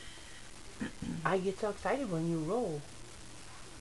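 A young woman speaks playfully in a sing-song voice close by.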